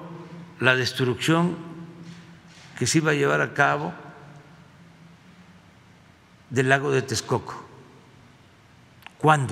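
An older man speaks emphatically into a microphone, with pauses, in a large echoing room.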